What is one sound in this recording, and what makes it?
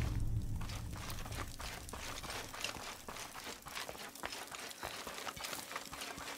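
Footsteps crunch on a rocky floor.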